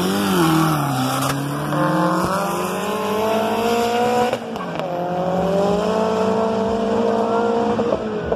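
Race cars roar away at full throttle.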